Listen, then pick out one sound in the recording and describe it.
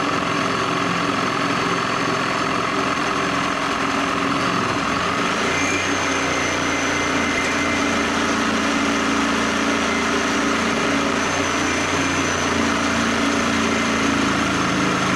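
A reciprocating saw buzzes loudly, cutting through metal.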